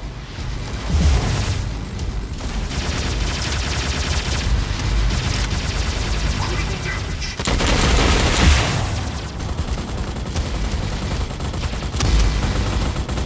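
Explosions boom in a video game.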